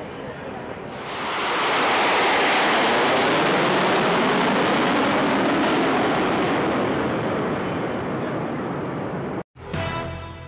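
Jet planes roar loudly overhead and slowly fade.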